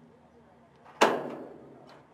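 A soccer ball is kicked with a sharp thud.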